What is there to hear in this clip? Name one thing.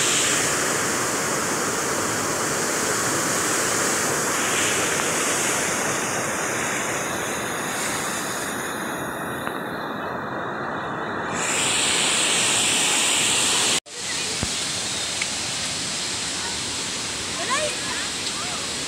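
Water rushes and splashes loudly over a waterfall.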